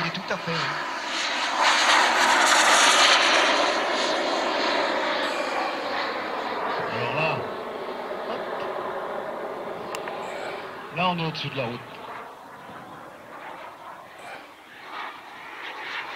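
A jet engine roars loudly overhead and slowly fades into the distance.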